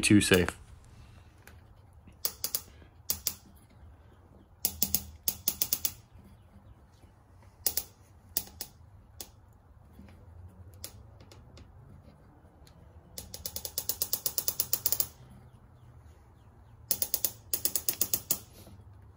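A metal tool clicks and ratchets in short rapid bursts.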